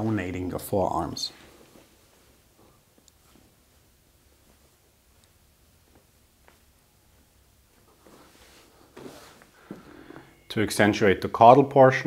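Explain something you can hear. A man speaks calmly and clearly, close by, with pauses between phrases.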